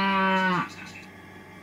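A cow moos loudly.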